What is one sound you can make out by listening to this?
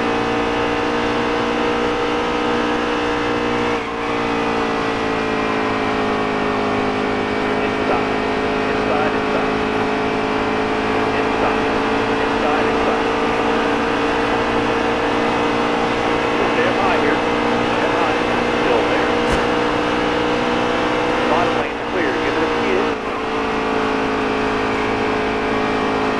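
A racing engine roars steadily at high speed.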